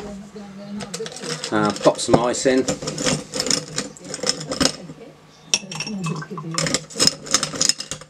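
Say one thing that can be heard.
Ice clinks as a spoon stirs it in a glass.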